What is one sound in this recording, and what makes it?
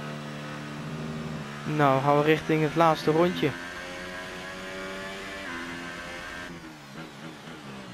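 A Formula One car's engine screams at high revs.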